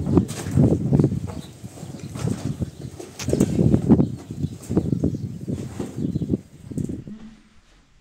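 A man knocks on a metal door.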